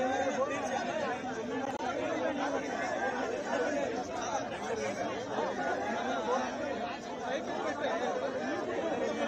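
A crowd of men talk loudly over one another close by.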